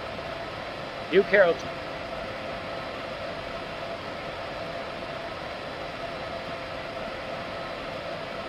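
An electric locomotive hums steadily while standing still.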